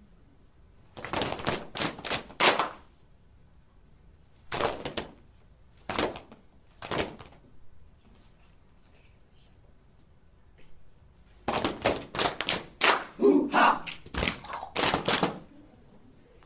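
A group of children chants together loudly in short bursts.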